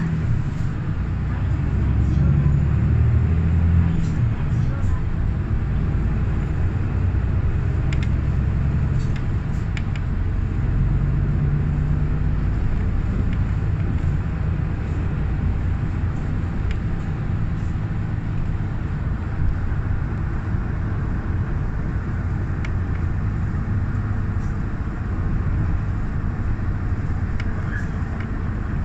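A vehicle rumbles steadily as it drives, heard from inside.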